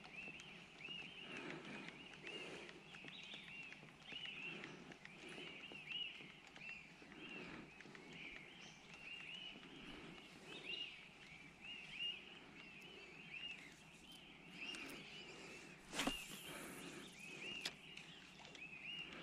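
Water laps softly against a small boat drifting on a river.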